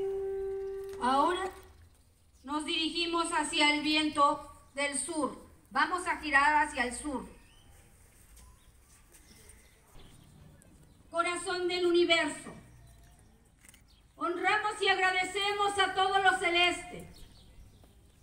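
A woman calls out loudly in long, sung phrases outdoors.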